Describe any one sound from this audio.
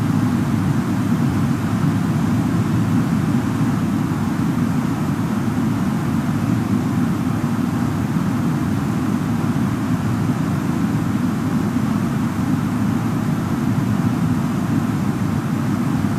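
Jet engines roar with a steady low rumble.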